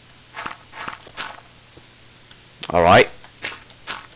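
Stone blocks crack and crumble as a pickaxe digs into them.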